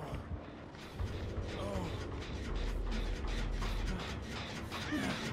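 Quick footsteps thud across a wooden floor.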